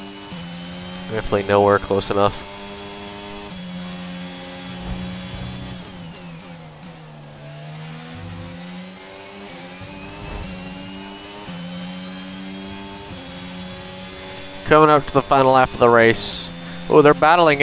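A racing car engine whines, rising and falling in pitch as it shifts gears and brakes.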